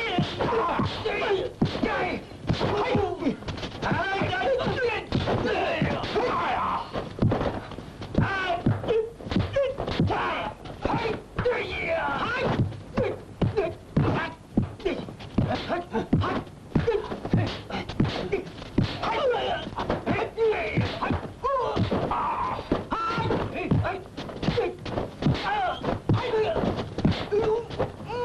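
Men grunt and shout as they fight.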